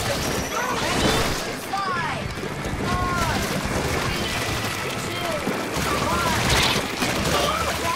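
Wet ink splatters and squelches in quick bursts.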